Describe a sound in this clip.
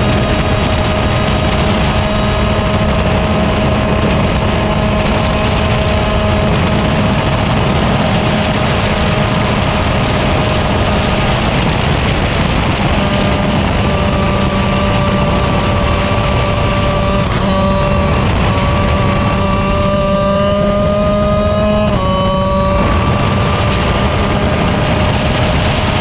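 A kart engine buzzes loudly close by, its pitch rising and falling with speed.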